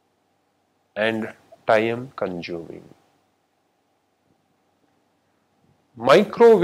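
A man speaks calmly and clearly into a microphone, lecturing with pauses.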